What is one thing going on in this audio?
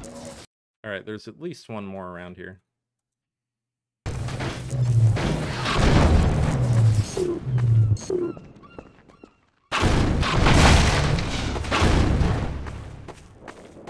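A heavy rubber tyre thuds and bangs against the ground.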